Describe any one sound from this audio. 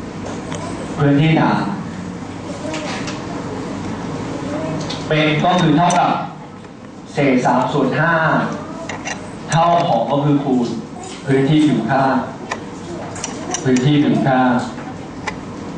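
A young man speaks calmly through a clip-on microphone, in bursts with pauses.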